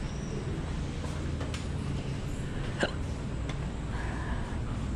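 An elevator hums low and steadily as it moves.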